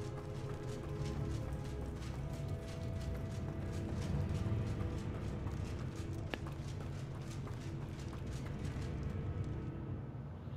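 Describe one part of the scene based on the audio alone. Footsteps run quickly over stone, echoing in a hollow space.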